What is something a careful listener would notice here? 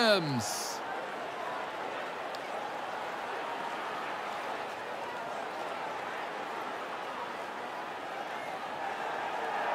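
A crowd claps and cheers steadily.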